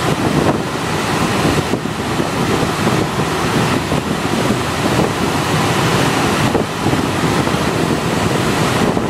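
Wind rushes and buffets past the open cabin window.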